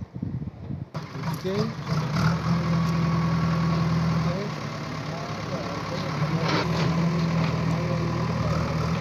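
A backhoe engine rumbles steadily nearby.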